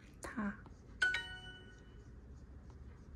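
A tablet plays a bright chime.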